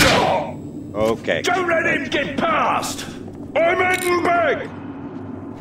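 A man talks loudly and excitedly close to a microphone.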